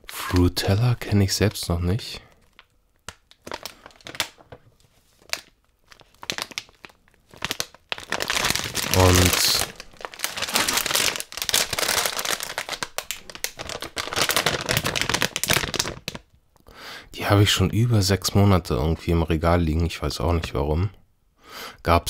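A plastic candy bag crinkles and rustles as hands handle it.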